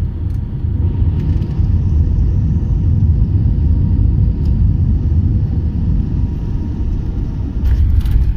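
Jet engines roar louder as the airliner brakes on the runway.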